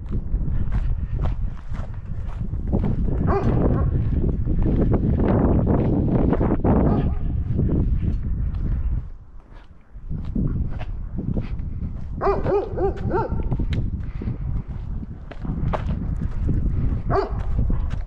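Footsteps crunch on gravel and paving.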